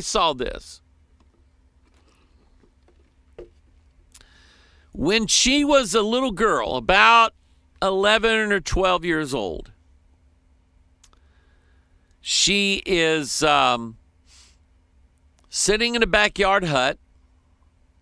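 A middle-aged man speaks calmly into a close microphone, in bursts with pauses.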